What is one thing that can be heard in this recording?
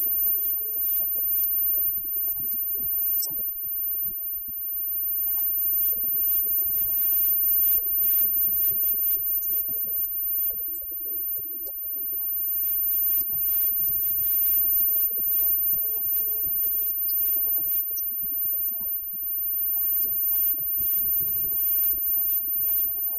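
Drums and cymbals beat a steady rhythm.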